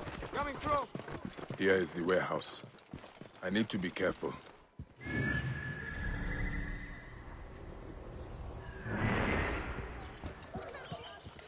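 Footsteps run over dirt.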